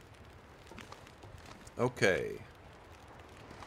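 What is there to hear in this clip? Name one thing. A wood stove fire crackles softly.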